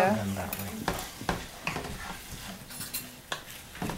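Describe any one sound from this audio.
A wooden spoon scrapes and stirs food in a pan.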